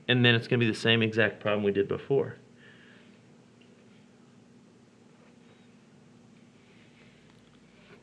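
A felt-tip marker squeaks across paper.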